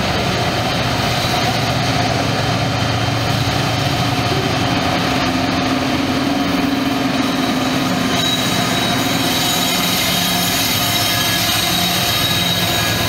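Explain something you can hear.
A locomotive engine drones heavily as it passes close by.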